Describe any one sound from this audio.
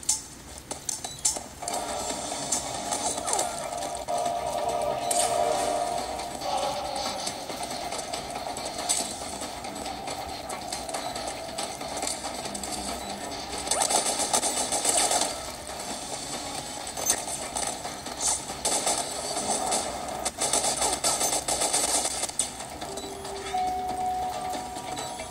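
Game music and sound effects play steadily from a small handheld speaker.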